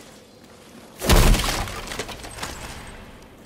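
A wooden chest creaks and bangs open.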